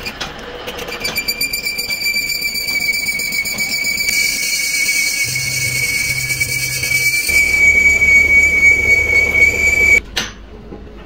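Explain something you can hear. A lathe cutting tool squeals while boring steel.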